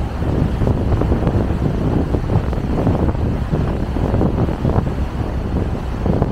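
Strong wind buffets and rumbles across open water.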